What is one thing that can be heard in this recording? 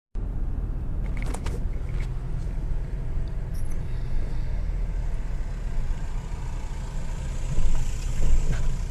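A car engine hums steadily from inside the moving car.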